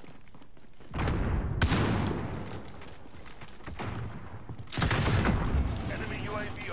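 A sniper rifle fires booming shots.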